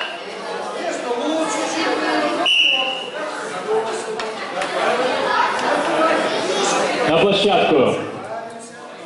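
A crowd of children chatters in the background.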